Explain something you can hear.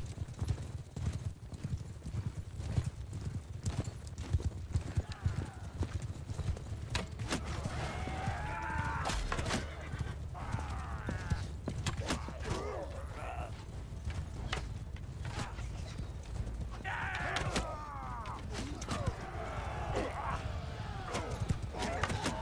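A horse gallops with thudding hooves.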